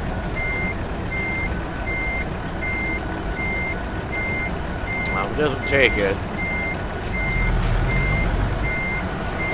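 A truck's reversing alarm beeps at an even pace.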